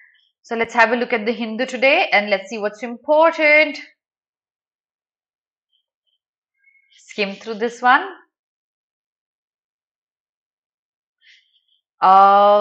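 A young woman speaks calmly and closely into a microphone, in short bursts with pauses.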